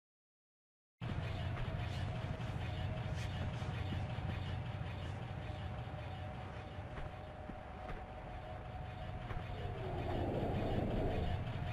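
A low, rumbling cave ambience drones steadily.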